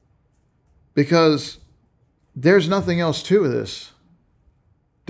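A middle-aged man speaks calmly and close into a microphone, in short phrases.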